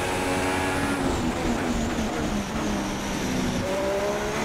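A Formula One car engine steps down in pitch as it downshifts under braking.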